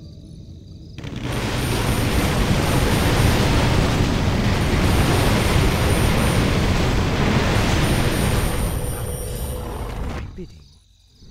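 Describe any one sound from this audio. Weapons clash and magic bursts in a loud, crowded battle.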